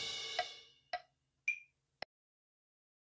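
A man plays a drum kit fast.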